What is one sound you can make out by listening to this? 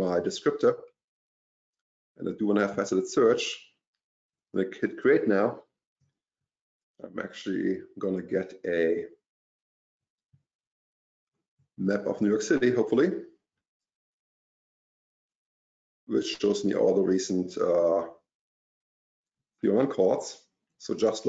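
A man speaks calmly in short bursts with pauses, close to a microphone over an online call.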